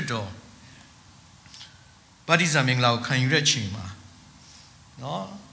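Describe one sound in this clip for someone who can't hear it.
A man speaks calmly into a microphone, heard through a loudspeaker in a hall.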